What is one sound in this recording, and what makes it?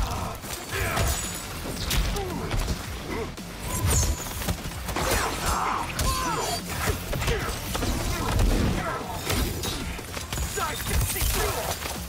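Ice shatters and crackles.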